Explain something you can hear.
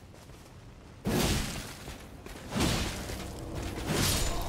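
Sword strikes whoosh and clang in a fight.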